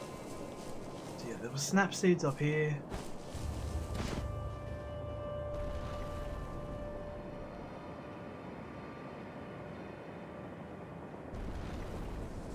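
Footsteps crunch softly in snow.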